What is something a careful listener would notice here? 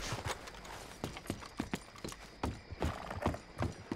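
Boots thud on wooden steps and boards.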